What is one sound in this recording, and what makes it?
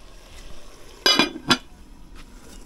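A metal pot lid clanks against a pot.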